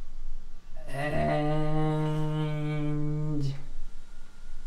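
A computer plays a short startup chime.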